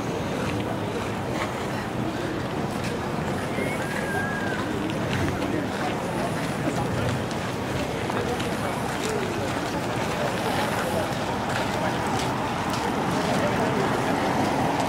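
Many people chatter faintly in the distance outdoors.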